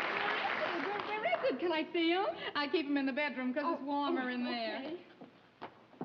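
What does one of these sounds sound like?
A woman talks excitedly and laughs.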